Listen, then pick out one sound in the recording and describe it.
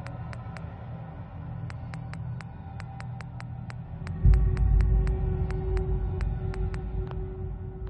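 Short menu clicks tick rapidly as a selection scrolls through a list.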